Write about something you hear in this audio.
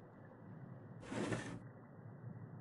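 A drawer slides open with a scrape.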